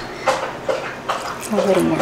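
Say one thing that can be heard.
Milk pours into a pot.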